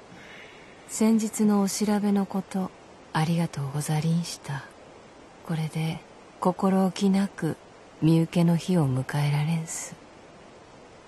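A man reads a letter aloud calmly.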